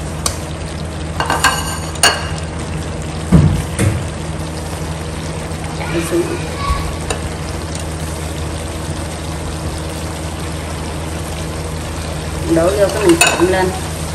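A metal spatula scrapes and clinks against a pan.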